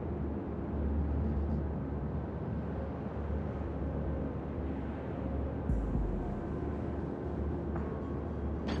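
A ship's engines rumble low and steady.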